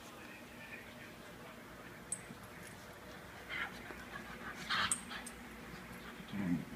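Two small dogs scuffle and play.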